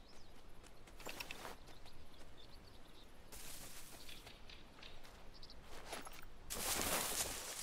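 Footsteps rustle through dry leaves and undergrowth.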